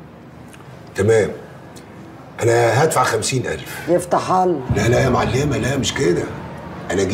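A middle-aged man speaks with animation nearby.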